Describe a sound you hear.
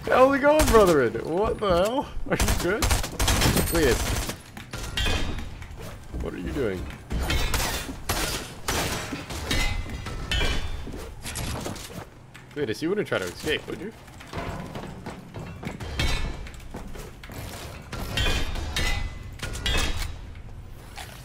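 Game building pieces click and thud rapidly.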